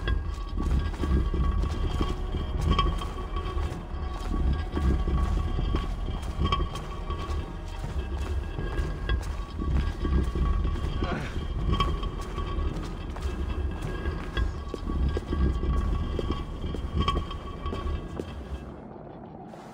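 Heavy footsteps thud steadily along a hard floor.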